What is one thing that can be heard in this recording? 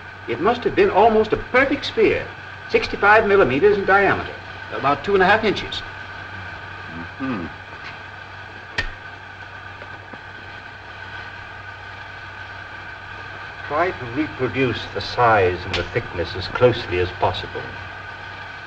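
Middle-aged and elderly men talk calmly nearby.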